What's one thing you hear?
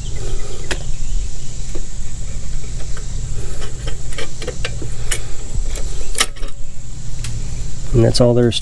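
Small plastic parts click and tap together as they are handled.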